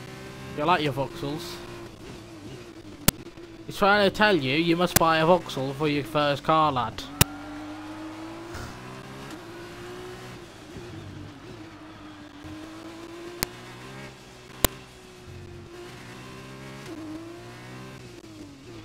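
A racing car engine whines steadily, rising and falling in pitch as the car speeds up and brakes.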